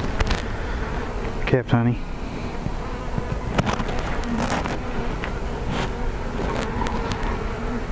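Wooden hive frames knock and scrape as they are handled.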